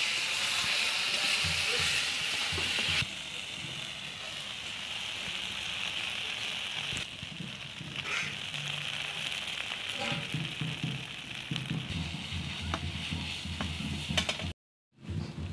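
Oil sizzles steadily in a hot pan.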